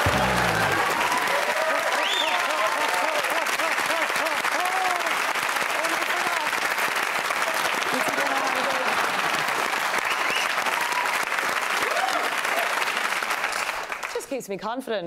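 A crowd laughs and whoops.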